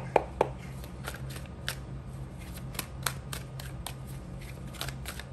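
Playing cards shuffle and flick against each other with soft, quick taps.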